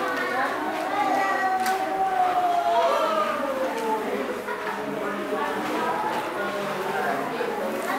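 A group of children sings together in an echoing room.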